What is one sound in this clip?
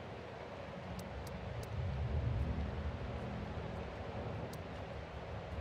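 Soft interface clicks tick a few times.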